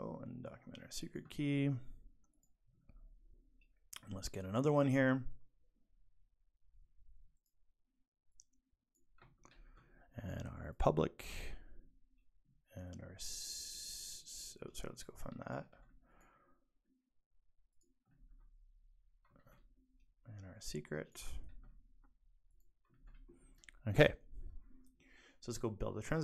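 A young man talks into a close microphone, calmly and with pauses.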